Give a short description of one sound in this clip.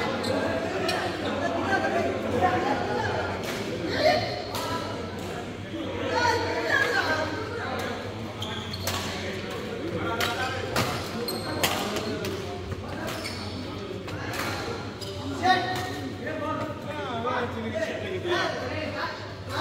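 Shuttlecocks are struck sharply with rackets, again and again.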